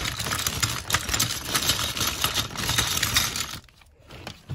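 Plastic bricks clatter and rattle as they are poured out.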